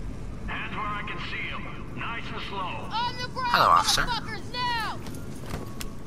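A man shouts orders loudly.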